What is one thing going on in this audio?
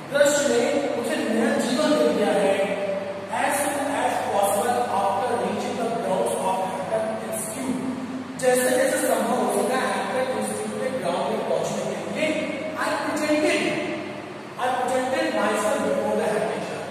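A man speaks clearly and steadily, as if teaching.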